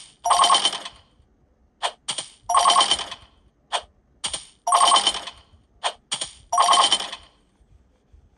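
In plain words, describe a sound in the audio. Short electronic game sounds play in quick bursts from a tablet speaker.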